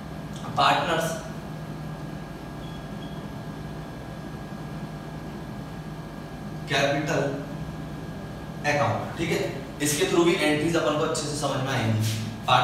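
A man speaks calmly into a headset microphone, close by.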